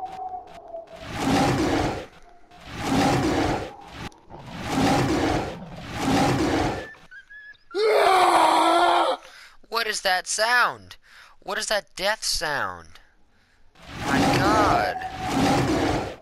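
A big cat snarls and roars as it attacks.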